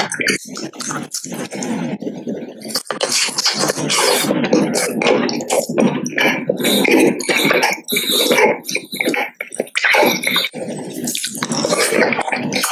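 A man chews and sucks on candy close to the microphone.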